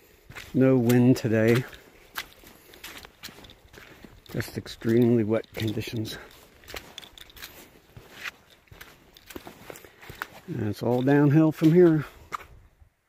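Footsteps squelch and crunch on wet mud and snow.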